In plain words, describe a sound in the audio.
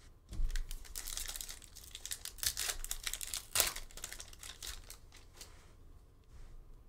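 Foil packaging crinkles and tears.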